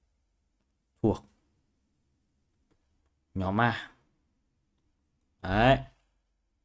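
A young man speaks calmly in short phrases close to a microphone.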